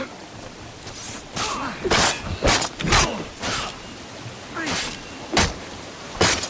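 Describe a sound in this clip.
Swords clash with sharp metallic rings.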